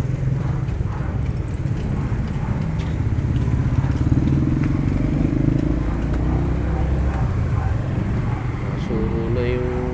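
A motorcycle engine rumbles close by as it passes.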